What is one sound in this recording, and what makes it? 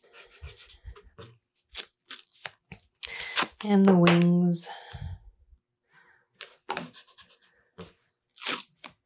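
Small wooden pieces tap and knock softly on a wooden board.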